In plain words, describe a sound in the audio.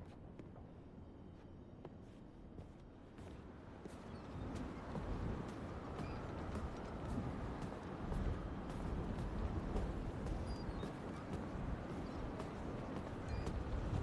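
Wind blows steadily outdoors and grows stronger.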